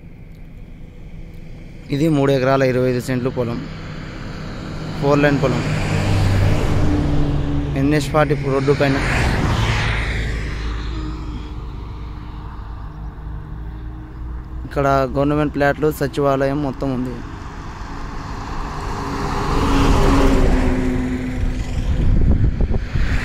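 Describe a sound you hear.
Vehicles whoosh past close by on a road.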